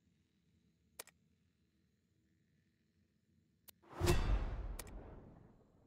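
Menu clicks tick sharply a few times.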